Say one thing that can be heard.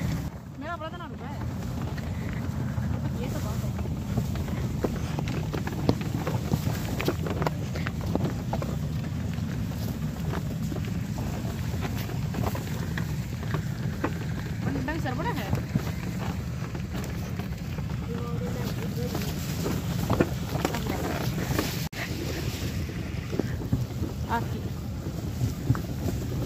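Wooden cart wheels creak and knock.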